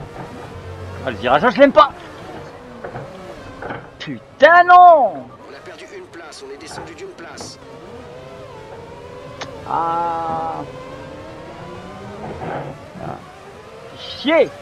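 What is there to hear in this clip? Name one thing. A racing car engine roars and changes pitch as the car speeds up and slows down.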